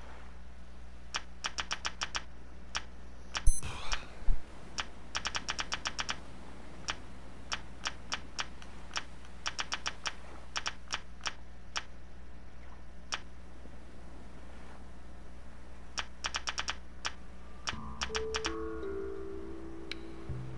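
Menu clicks tick quickly in bursts.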